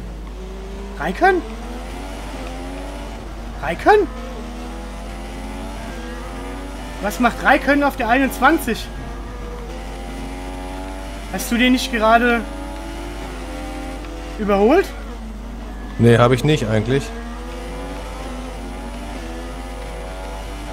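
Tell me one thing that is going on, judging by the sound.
A racing car engine whines steadily, rising and falling in pitch through the gear changes.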